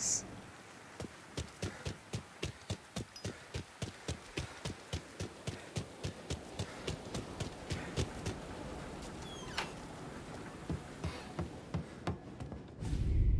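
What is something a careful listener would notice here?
Footsteps run quickly on a hard surface.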